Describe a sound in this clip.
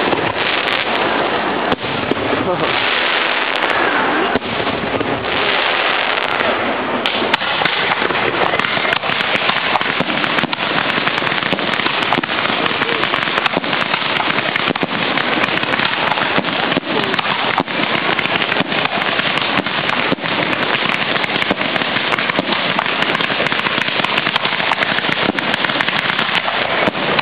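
Fireworks bang and boom in the sky.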